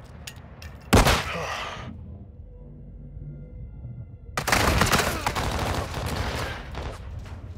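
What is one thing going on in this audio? A loud explosion bursts nearby.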